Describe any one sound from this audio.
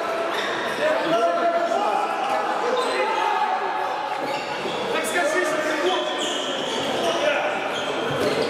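Young men shout and call out to each other in an echoing sports hall.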